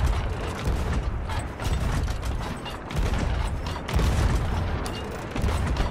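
Cannon fire booms in the distance.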